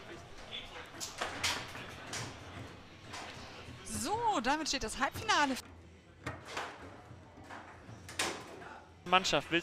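A foosball ball clacks sharply against rods and table walls.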